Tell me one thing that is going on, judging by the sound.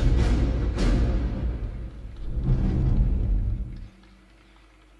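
Music plays over loudspeakers in a large echoing arena.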